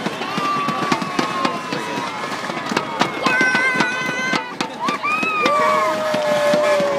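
A crowd cheers and calls out nearby.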